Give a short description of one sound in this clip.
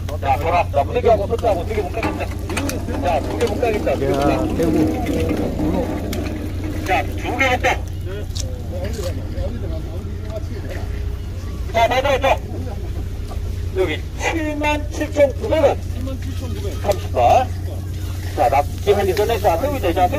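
Men talk with animation close by outdoors.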